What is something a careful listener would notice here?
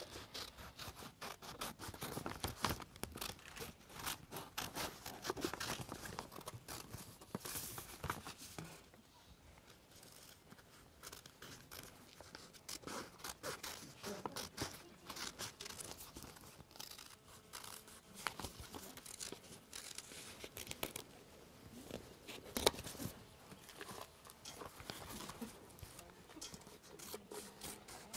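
Paper rustles as pages are turned and handled.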